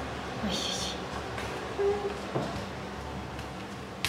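A toddler's bare feet patter softly on a wooden floor.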